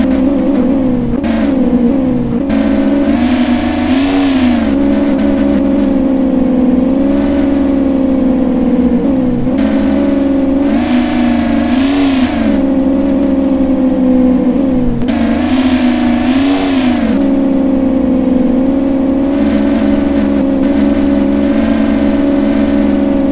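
A sports car engine hums steadily.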